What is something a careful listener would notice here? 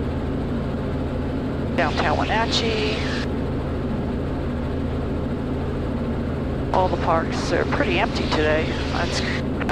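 A helicopter engine and rotor drone steadily, heard through a headset intercom.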